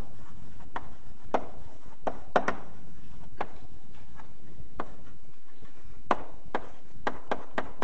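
Chalk taps and scrapes sharply against a blackboard.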